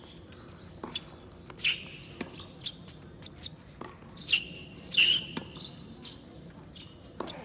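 A tennis racket strikes a ball back and forth in a rally.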